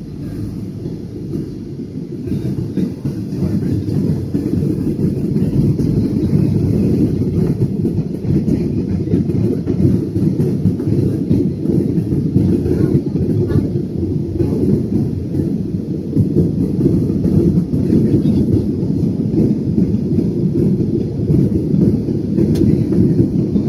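A jet airliner's engines roar steadily in the cabin.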